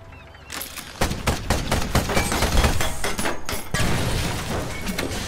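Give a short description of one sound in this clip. A cannon fires in rapid bursts.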